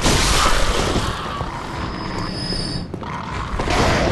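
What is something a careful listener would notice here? A blade slashes and strikes flesh.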